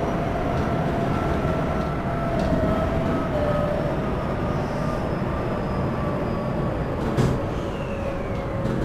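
An electric commuter train's traction motors whine as it runs through a tunnel.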